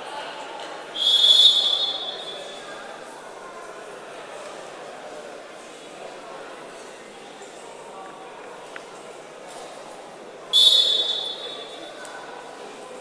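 A referee blows a sharp whistle in an echoing hall.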